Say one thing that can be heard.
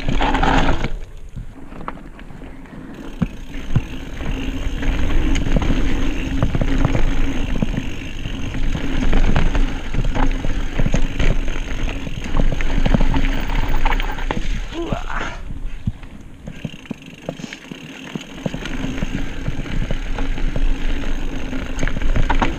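Bike tyres crunch and rumble over a dirt trail.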